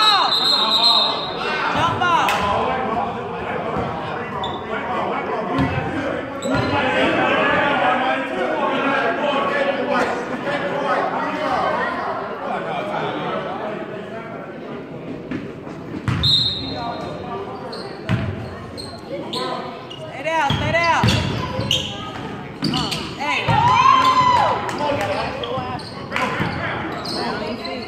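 Men shout and talk across a large echoing gym.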